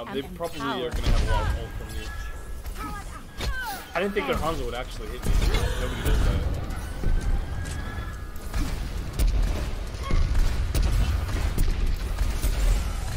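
Weapon blasts boom and crackle in rapid bursts.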